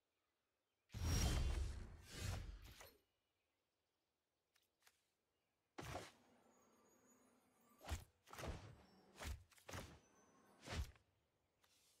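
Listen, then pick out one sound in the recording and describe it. Digital card game sound effects whoosh and chime as cards are played.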